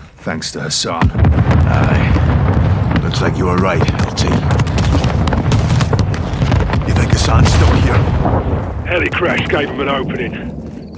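Explosions boom and rumble loudly nearby.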